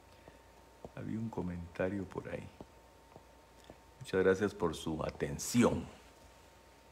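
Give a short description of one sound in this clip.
A middle-aged man speaks calmly and close to a phone microphone, in short bursts.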